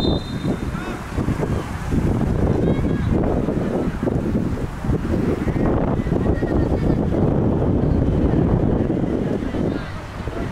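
Wind rumbles heavily against the microphone outdoors.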